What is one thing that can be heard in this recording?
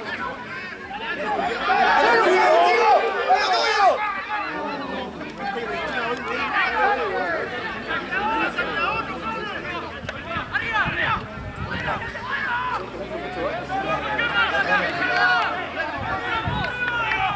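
Young men shout to each other on a playing field.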